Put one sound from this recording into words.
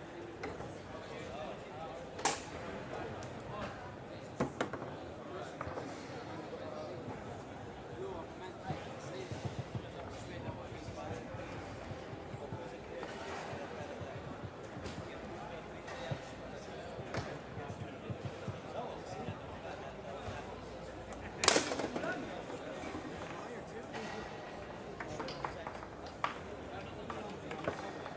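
Foosball rods rattle and knock as players spin and slide them.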